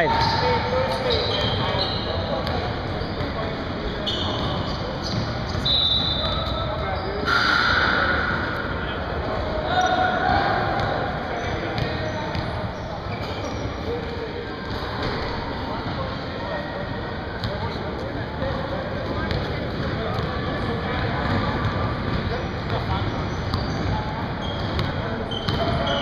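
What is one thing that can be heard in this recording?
Men talk and call out across a large echoing gym.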